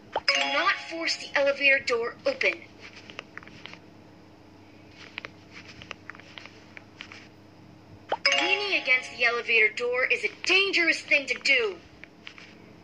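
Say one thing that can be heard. A woman speaks with animation in a bright, cartoonish voice.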